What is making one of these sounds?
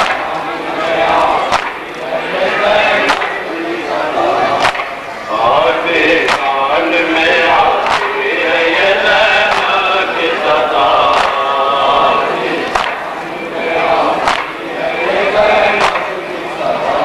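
A man chants loudly through a microphone over a loudspeaker.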